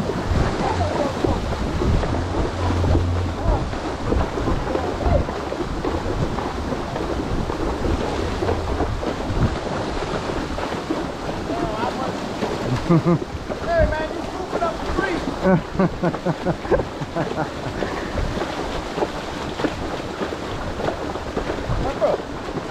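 Horses splash steadily through shallow water.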